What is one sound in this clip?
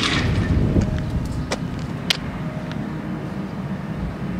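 An excavator engine rumbles nearby.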